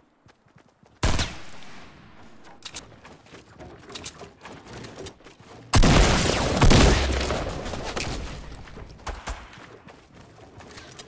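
Wooden walls snap into place as they are built.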